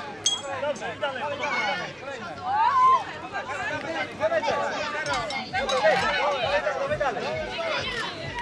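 Young children shout and squeal excitedly.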